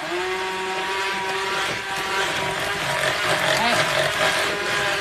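An electric hand mixer whirs steadily as it beats batter.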